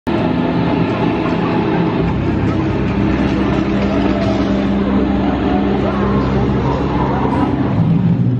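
A fog machine hisses, puffing out jets of mist.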